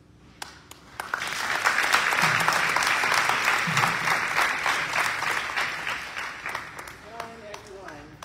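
An audience applauds loudly, then the clapping fades.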